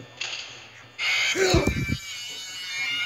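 A loud electronic screech blares suddenly.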